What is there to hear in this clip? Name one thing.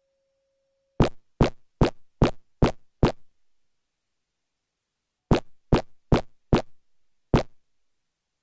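Footsteps thud on a hard floor at an even pace.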